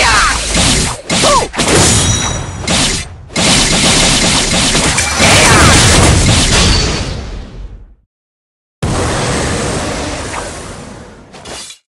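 Explosive magic blasts crash and rumble.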